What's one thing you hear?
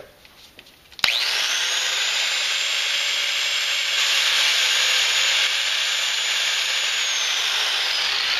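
An angle grinder starts up and whirs with a loud, high, steady whine.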